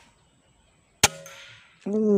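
An air rifle fires once with a sharp crack.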